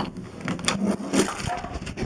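A doorknob rattles and clicks as it turns.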